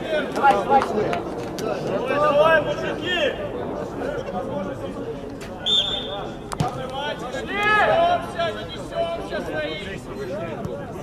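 Young men shout to one another outdoors.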